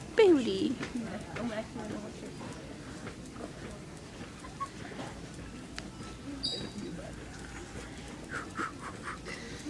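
A shopping cart rattles softly as it rolls along.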